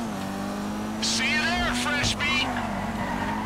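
Tyres screech as a car skids on a road.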